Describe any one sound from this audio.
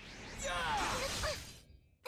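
A blade whooshes swiftly through the air.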